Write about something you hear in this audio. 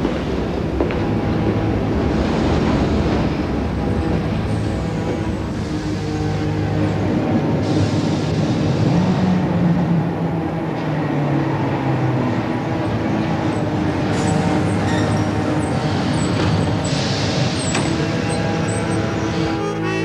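A subway train rumbles steadily.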